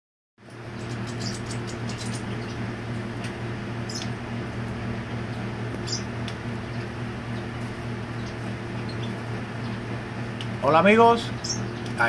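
Small birds give short, high chirps now and then.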